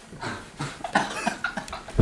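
A young man laughs heartily nearby.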